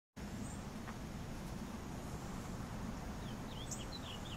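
A shallow stream gently ripples and trickles.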